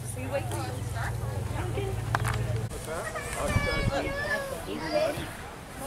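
Men and women chat casually nearby outdoors.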